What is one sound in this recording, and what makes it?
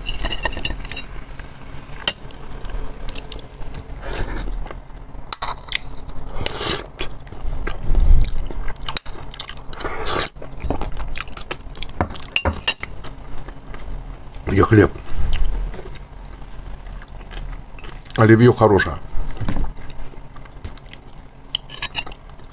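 A man chews food loudly and smacks his lips close to a microphone.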